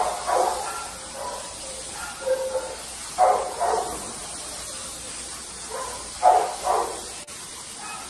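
A dog whines.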